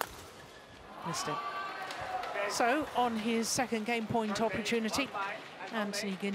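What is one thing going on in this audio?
A crowd in a large hall claps and cheers.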